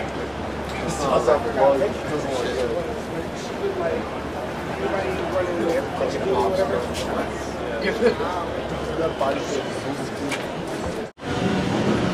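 A man and a woman talk nearby.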